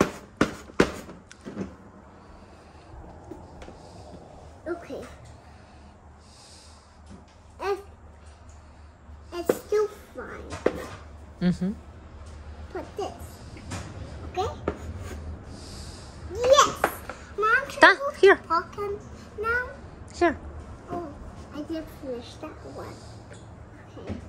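A young girl talks and counts aloud up close.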